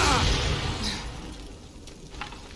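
Electrical sparks crackle and hiss.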